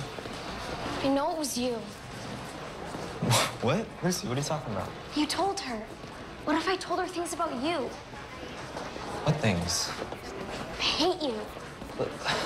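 A young girl talks, close by.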